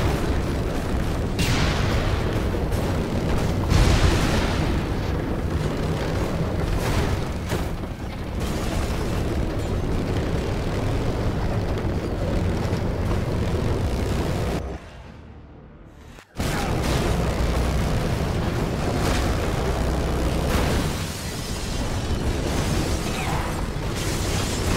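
Metal crashes and scrapes against obstacles.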